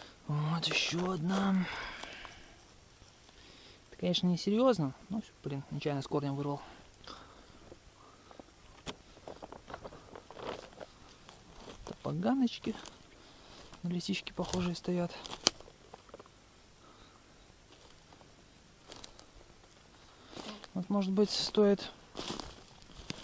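Footsteps crunch over dry twigs and grass.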